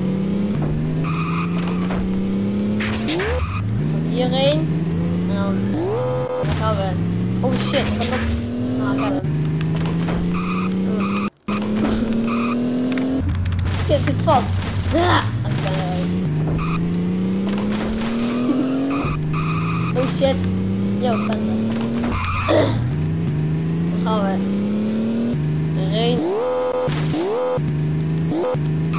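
A car engine revs up through the gears.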